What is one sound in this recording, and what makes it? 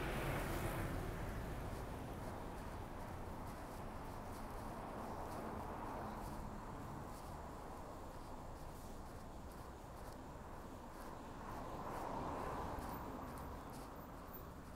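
Cars drive past one after another.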